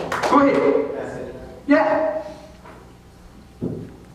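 An older man speaks through a microphone in a reverberant hall.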